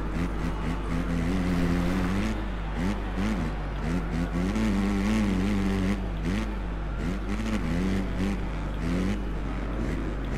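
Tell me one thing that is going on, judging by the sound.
A motorcycle engine revs up and down, rising and falling in pitch.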